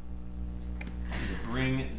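A card slides onto a table.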